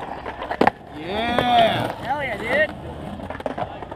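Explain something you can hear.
Skateboard wheels roll and rumble on concrete nearby.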